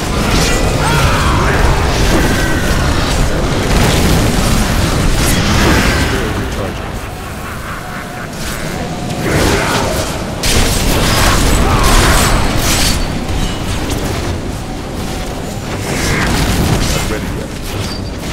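A fiery beam roars steadily.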